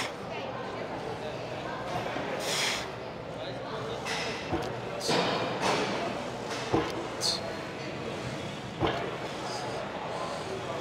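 A large echoing hall hums with steady background noise.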